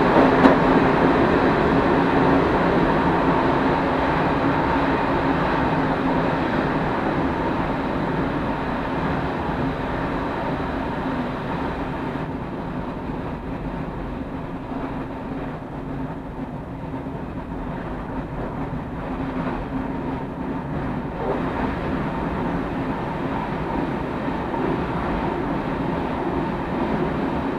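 A train's wheels clatter over rail joints.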